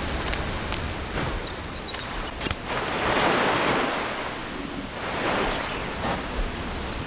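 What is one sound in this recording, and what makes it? Water splashes loudly in bursts.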